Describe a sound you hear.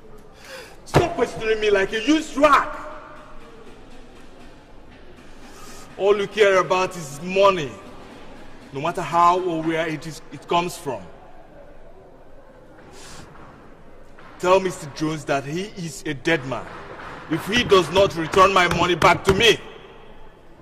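A young man speaks forcefully and angrily, close by.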